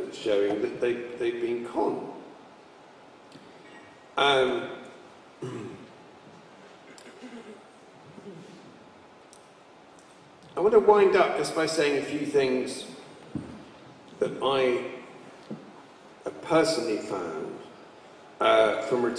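A middle-aged man speaks calmly nearby, with pauses, in a room with a slight echo.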